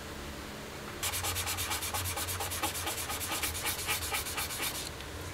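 Rubber gloves rub and crinkle together in quick rhythmic strokes.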